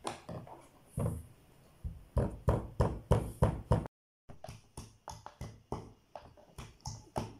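A pestle pounds rhythmically in a stone mortar.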